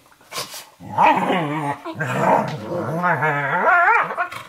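A puppy whines and yelps loudly.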